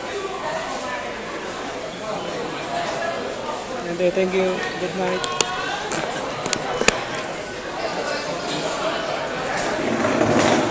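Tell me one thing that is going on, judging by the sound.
Many people chatter in a large, echoing hall.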